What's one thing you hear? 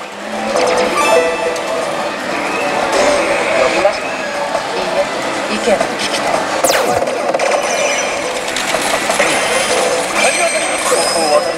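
A slot machine plays loud, busy music and electronic jingles.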